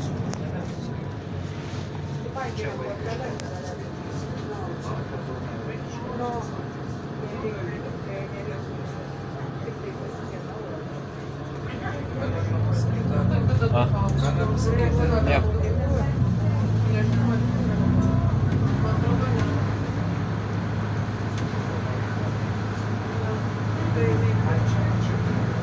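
A bus engine hums steadily from inside the bus, growing louder as the bus speeds up.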